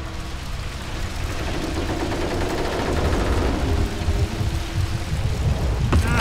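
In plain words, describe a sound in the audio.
A fire roars and crackles loudly.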